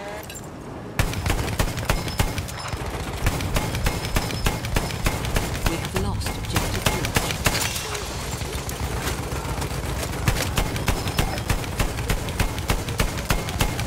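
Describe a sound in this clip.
An anti-aircraft gun fires rapid, heavy, booming shots.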